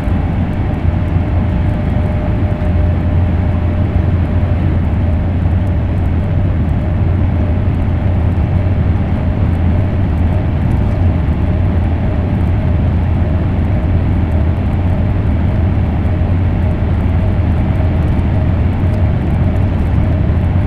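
A train rumbles steadily at high speed.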